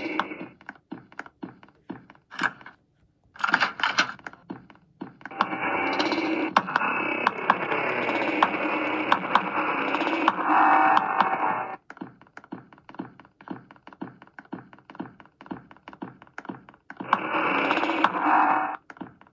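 Quick footsteps patter from a game through a small speaker.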